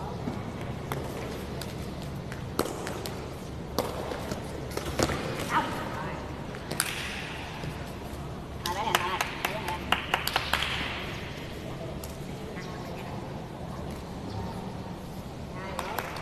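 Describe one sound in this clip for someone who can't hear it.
A ball is kicked and thumps in a large echoing hall.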